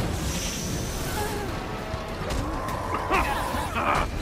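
Explosions rumble.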